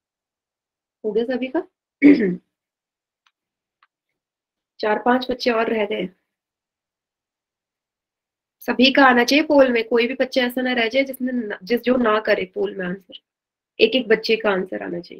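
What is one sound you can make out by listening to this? A young woman speaks calmly into a microphone, heard as in an online call, in short bursts with pauses.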